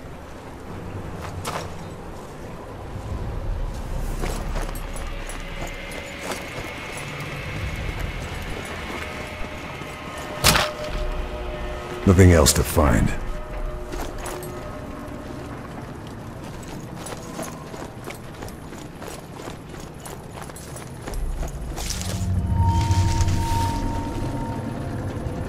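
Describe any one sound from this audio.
Footsteps crunch softly on dirt and grass.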